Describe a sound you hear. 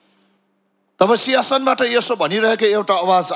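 A man speaks with emotion into a microphone, heard through loudspeakers.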